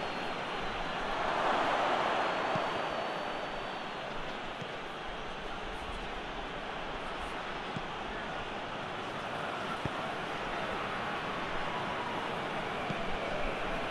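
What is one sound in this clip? A stadium crowd roars steadily, swelling at times.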